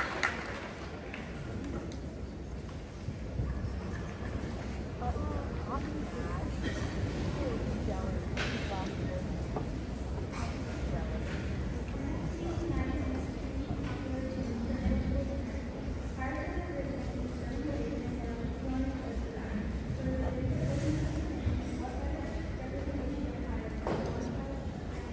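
A large concert band plays a lively tune in a big echoing hall.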